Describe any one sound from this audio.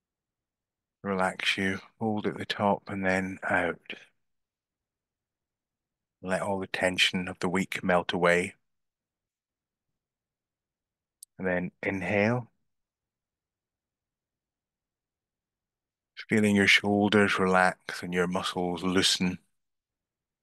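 A middle-aged man talks calmly through an online call, in short bursts with pauses.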